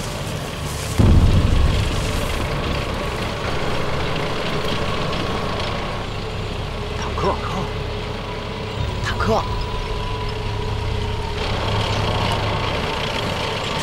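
Tank engines rumble as tanks roll along.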